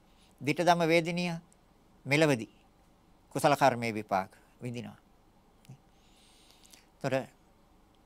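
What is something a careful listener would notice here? A middle-aged man speaks calmly and slowly into a close microphone, in short phrases with pauses.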